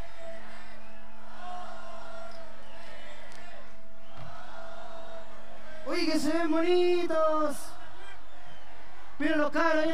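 A large crowd cheers and sings along loudly outdoors.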